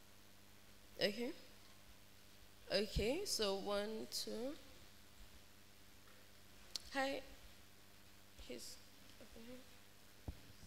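A young woman speaks with animation into a microphone, in short bursts with pauses.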